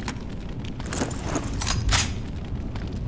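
A rifle clicks and rattles as it is loaded.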